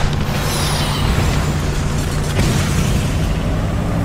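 An explosion bursts briefly.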